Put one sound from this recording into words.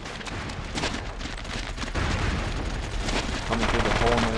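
Footsteps run quickly over a dirt path.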